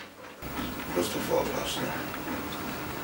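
A woman speaks anxiously nearby.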